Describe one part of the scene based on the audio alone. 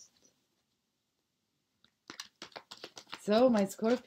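Cards rustle and shuffle in a young woman's hands.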